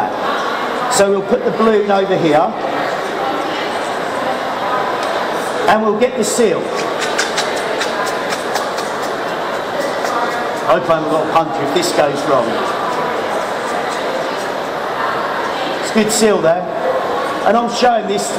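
A man speaks with animation, some distance away, in a large hall.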